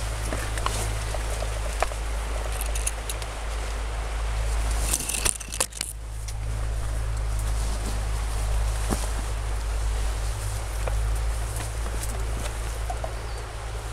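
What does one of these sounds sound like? A man's protective suit rustles as he moves.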